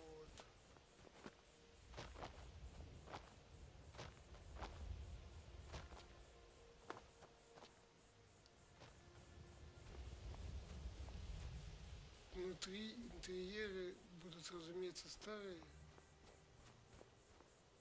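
Armoured footsteps crunch on snow and stone.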